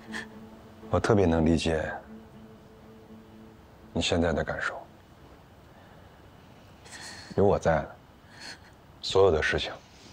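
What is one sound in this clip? A young man speaks softly and gently, close by.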